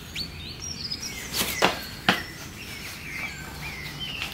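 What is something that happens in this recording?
Shoes scuff and tap on a tiled floor.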